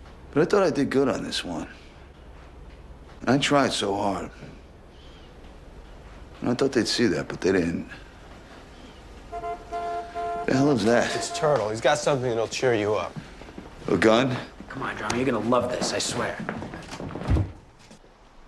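A man speaks with surprise close by.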